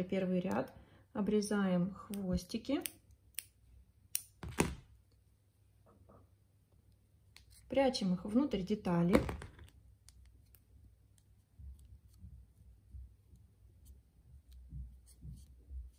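Small scissors snip through yarn.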